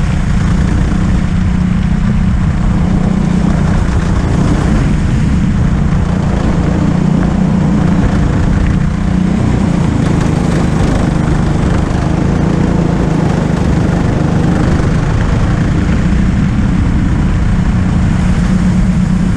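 A go-kart engine drones loudly and steadily up close.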